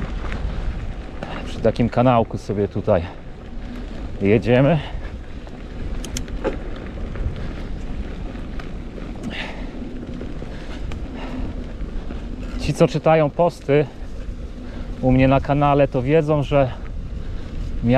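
Bicycle tyres roll and crunch over a dirt path.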